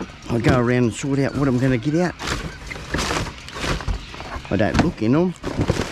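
Cardboard boxes rustle and scrape inside a plastic bin.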